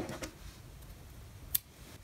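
Small scissors snip a thread.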